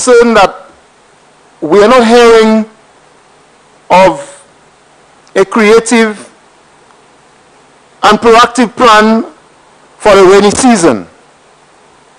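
A man speaks slowly and calmly into a microphone, pausing between phrases.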